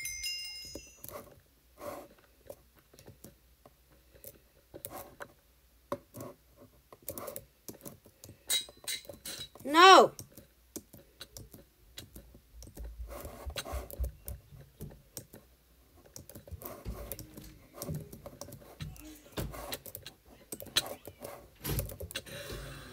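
Blocks are placed and broken with short, soft thuds and clicks.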